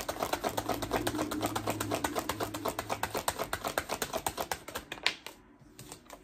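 Cards riffle rapidly as a woman shuffles a deck.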